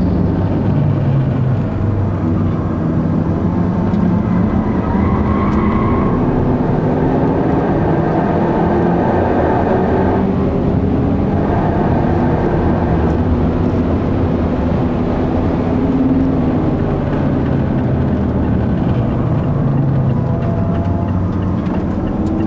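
Tyres rumble on the track.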